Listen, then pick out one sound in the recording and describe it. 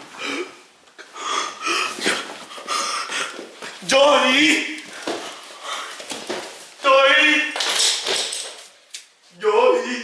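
A young man talks and shouts with animation close by.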